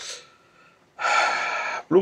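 Water bubbles and hisses in a pot.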